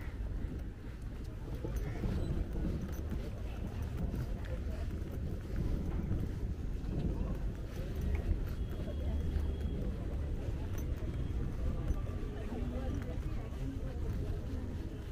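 Wind rumbles outdoors across the microphone.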